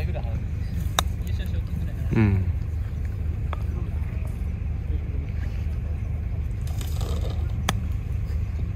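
A putter clicks sharply against a golf ball.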